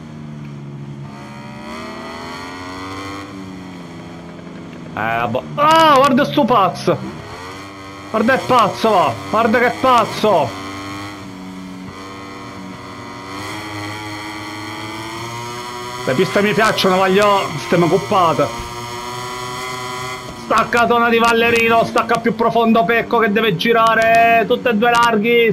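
A motorcycle engine whines and revs at high speed.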